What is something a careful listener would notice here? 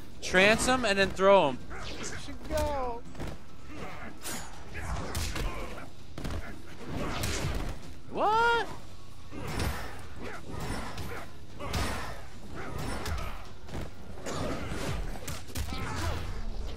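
Punches and kicks land with heavy thuds and smacks.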